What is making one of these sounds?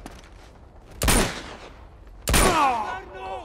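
A pistol fires single shots.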